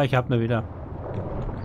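An older man speaks briefly and calmly into a close microphone.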